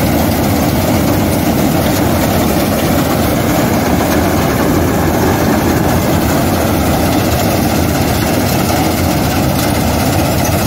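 A combine harvester engine roars steadily close by.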